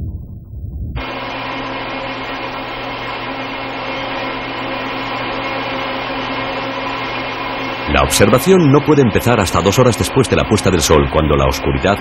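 Computer machinery hums steadily.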